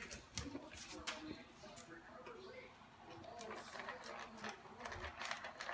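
Small paws patter and click on a hard floor.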